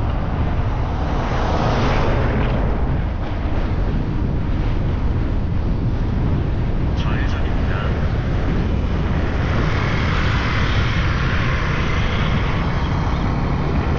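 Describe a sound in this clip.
A vehicle's tyres hum on the road as it drives along.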